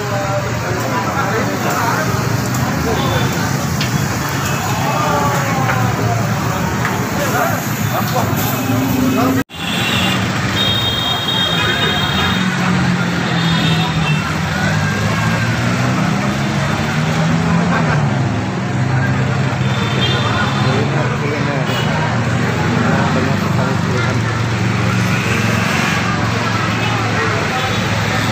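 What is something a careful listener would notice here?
A crowd chatters all around, loud and busy.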